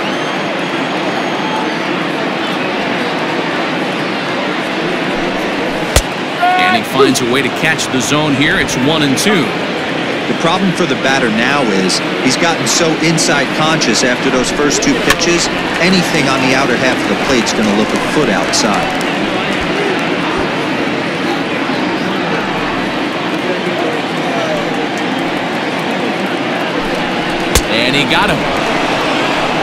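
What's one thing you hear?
A large crowd murmurs steadily in a big open stadium.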